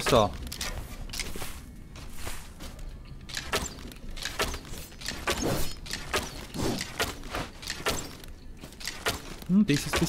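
Swords clash with sharp metallic hits.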